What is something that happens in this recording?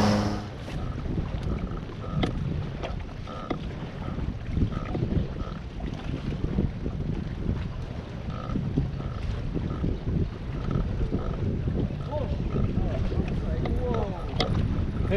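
Water laps against the hull of a small boat.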